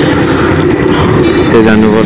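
Another motorcycle rides past nearby.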